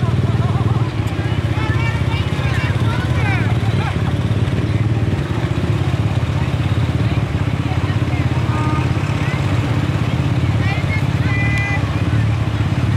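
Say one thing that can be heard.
Children and adults call out and cheer from a passing float.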